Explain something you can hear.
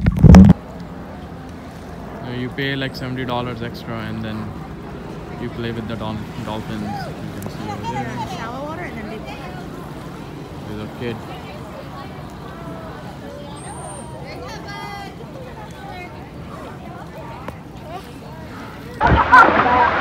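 Men and women chatter at a distance outdoors.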